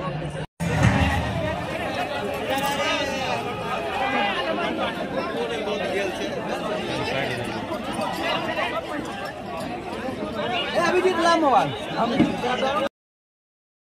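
A crowd of young men chatters and cheers loudly outdoors.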